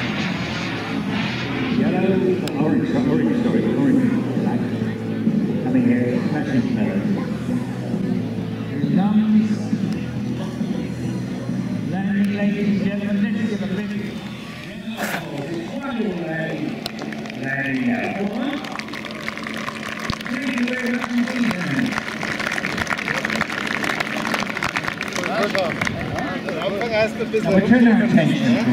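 A man speaks with animation over a loudspeaker.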